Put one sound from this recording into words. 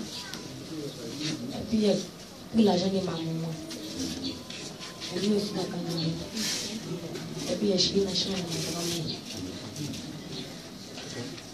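A young woman sings into a microphone through loudspeakers in an echoing room.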